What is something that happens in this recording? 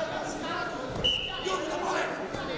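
A referee blows a sharp whistle blast.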